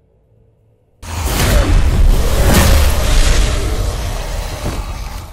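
Blades clash in a fierce strike.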